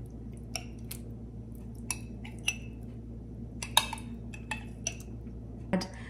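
A spoon scrapes thick cream into a metal pot.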